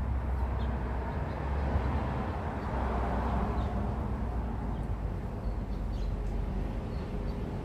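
Wind blows steadily outdoors, rustling leaves.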